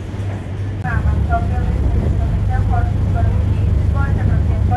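Boat wake water rushes and churns.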